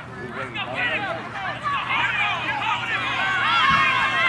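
Young players shout excitedly as a runner breaks away.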